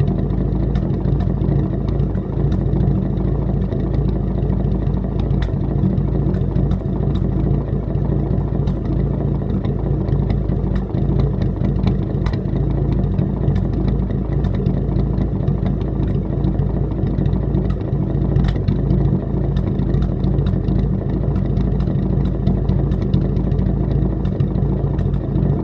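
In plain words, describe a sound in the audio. An old car engine idles with a steady, lumpy rumble close by.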